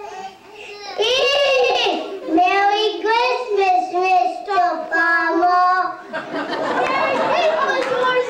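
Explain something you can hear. Young children laugh close by.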